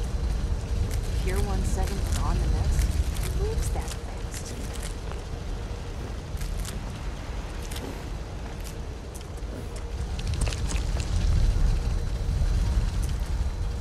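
Leafy plants rustle as they are brushed through and picked.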